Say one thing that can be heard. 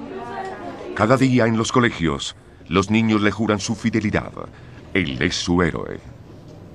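A large crowd of children chants loudly outdoors.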